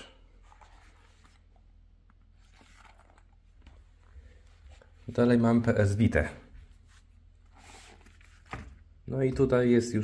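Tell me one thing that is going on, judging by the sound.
Hands handle and open a zippered case with soft rustles and clicks.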